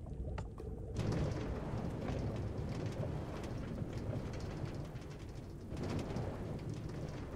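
A minecart rumbles along rails in a video game.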